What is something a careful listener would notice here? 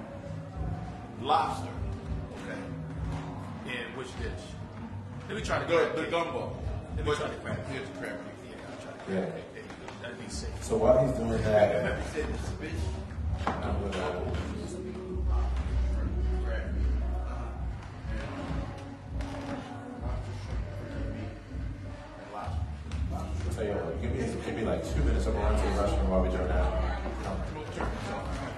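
A man speaks calmly, his voice amplified through a loudspeaker.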